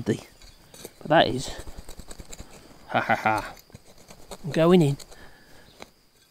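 A small hand tool scrapes and scratches through loose dry soil.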